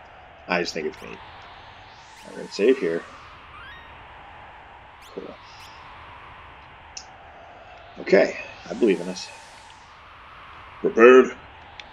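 A game menu makes short electronic blips as selections are made.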